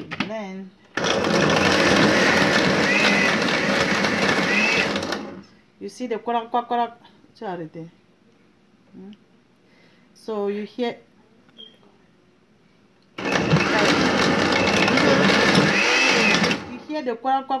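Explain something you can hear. A blender whirs loudly in short bursts.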